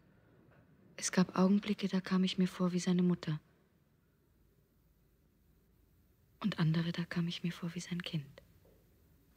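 A young woman speaks quietly and intensely, close by.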